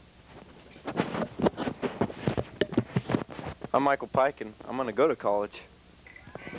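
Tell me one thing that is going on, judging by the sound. A young man talks into a handheld microphone.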